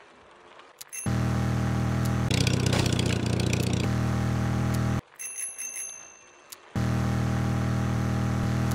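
Electronic game sounds hum and buzz loudly.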